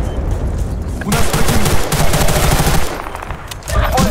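A rifle fires rapid loud bursts.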